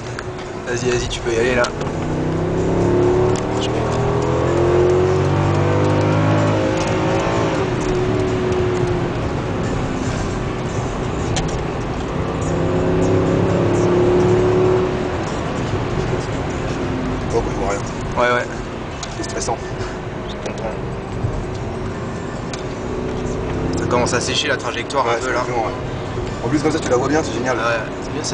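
A car engine roars from inside the cabin, rising and falling in pitch as it accelerates and shifts gears.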